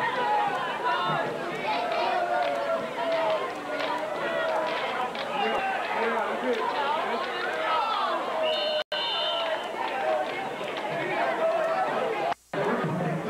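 A crowd of men and boys shout and cheer outdoors.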